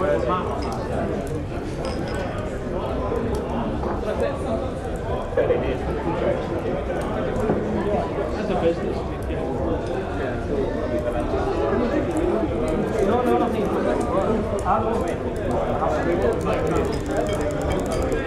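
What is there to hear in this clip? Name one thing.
Mugs and dishes clink now and then.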